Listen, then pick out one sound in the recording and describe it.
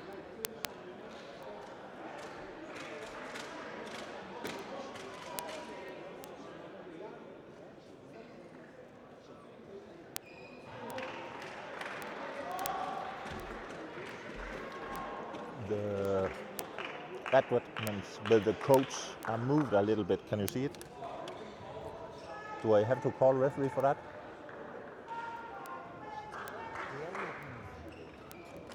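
Voices murmur and chatter in a large echoing hall.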